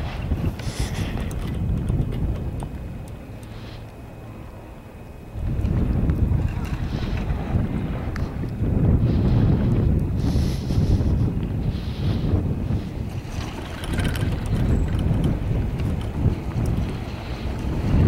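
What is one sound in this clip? Wind rumbles and gusts outdoors.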